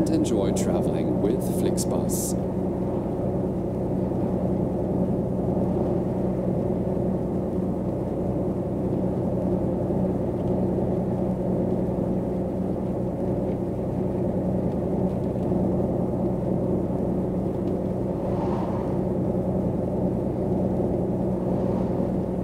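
Tyres roll on a road with a steady rumble.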